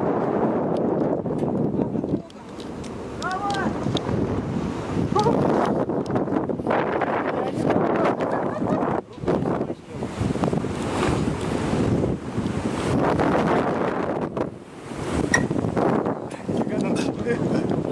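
Strong wind buffets the microphone high outdoors, gusting loudly.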